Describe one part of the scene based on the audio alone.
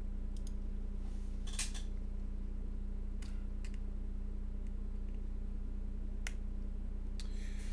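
Keyboard switches click faintly as hands work on them.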